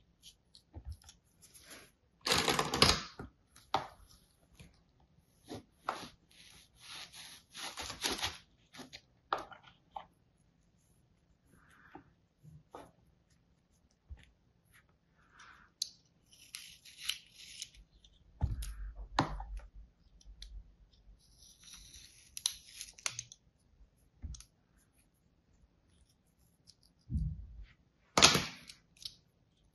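A blade scrapes and cuts through soft sand.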